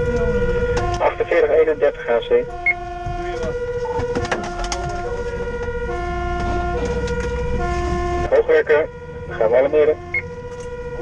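A man speaks briefly over a radio handset.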